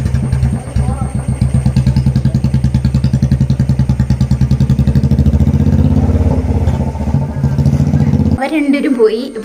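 A motorcycle engine idles and putters nearby, then pulls away.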